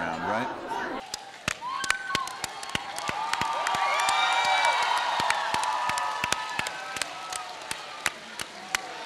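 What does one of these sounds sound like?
A crowd of fans screams and cheers in a large hall.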